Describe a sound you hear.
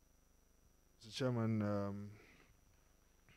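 A man speaks a few words through a microphone.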